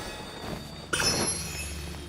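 A magical burst rings out with a bright shimmer.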